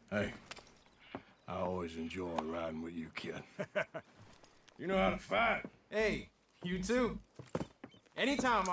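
A younger man talks with animation.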